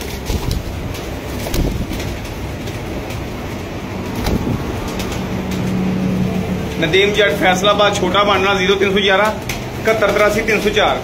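Pigeons coo softly and low, close by.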